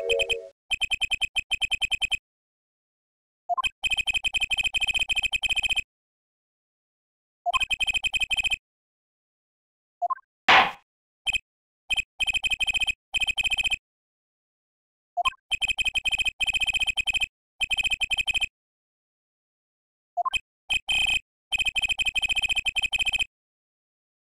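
Rapid electronic blips chatter in quick bursts.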